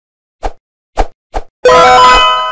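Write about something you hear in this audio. A game fight ends with quick hits.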